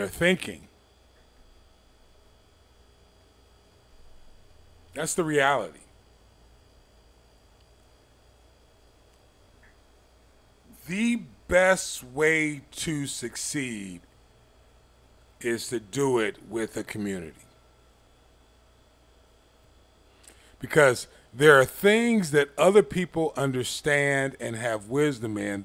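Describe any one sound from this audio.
An elderly man speaks expressively into a close microphone, pausing between phrases.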